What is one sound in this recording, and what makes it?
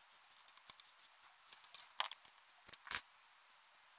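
Tape tears with a short snap.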